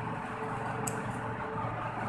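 Scissors snip through stiff plastic mesh.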